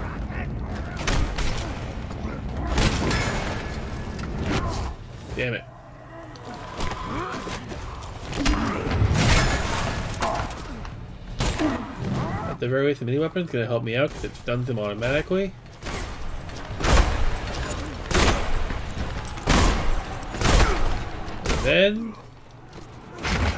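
Heavy blows and weapon strikes thud and crack in a fight.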